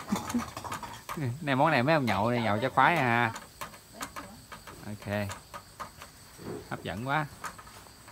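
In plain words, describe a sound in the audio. Chopsticks scrape and tap against a metal wok.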